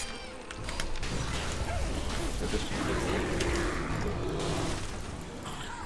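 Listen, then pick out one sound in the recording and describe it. Spells crackle and clash in a game battle.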